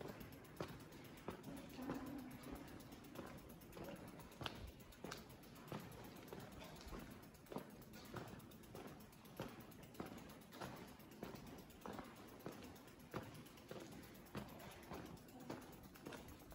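Footsteps crunch steadily along a path at a walking pace.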